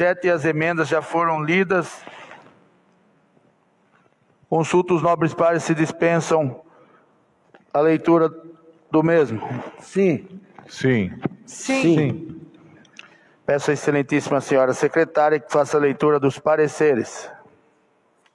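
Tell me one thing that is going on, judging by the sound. A man speaks calmly through a microphone, reading out in pauses.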